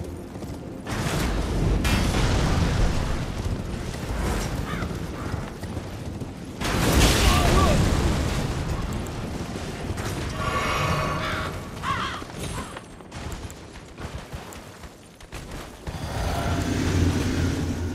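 A sword swishes and slashes.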